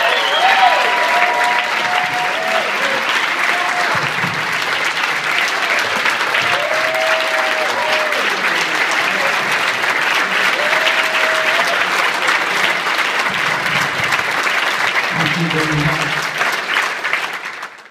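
A choir of men and women sings on a stage.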